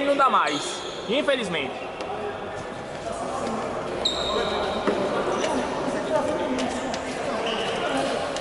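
A ball thuds as players kick it across a hard court.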